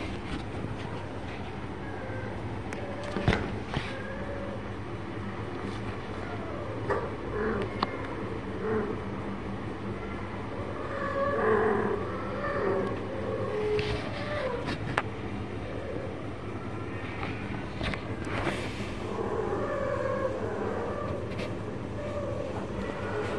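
Young cats scuffle and play on a hard floor.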